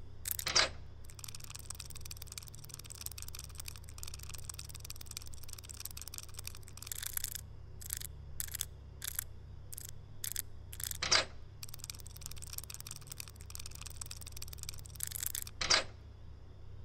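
A safe's combination dial clicks as it is turned.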